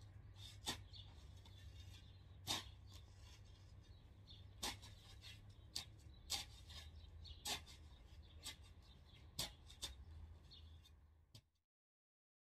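A garden tool scrapes and chops into soil.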